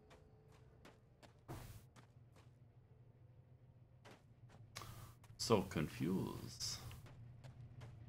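Footsteps crunch steadily on dirt.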